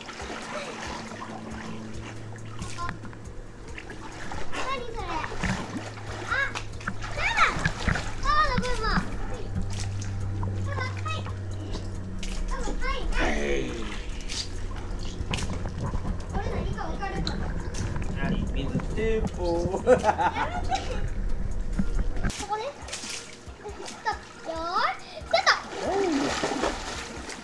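Water splashes and sloshes in a pool.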